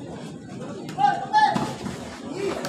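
Men on the court shout to each other.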